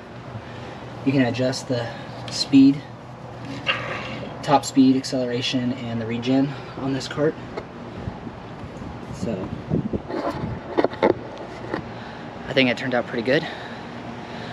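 A man talks calmly, close to the microphone.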